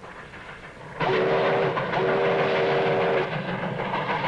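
A steam whistle blows in long blasts.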